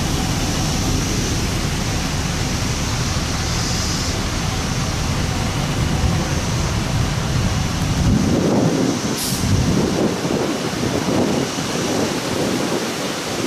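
Strong wind gusts rustle tree leaves outdoors.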